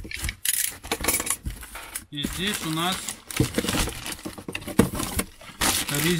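A cardboard box scrapes and rustles as it is opened.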